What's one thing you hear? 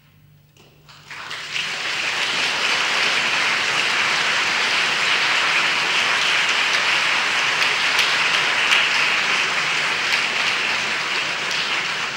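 An audience claps in a large, echoing hall.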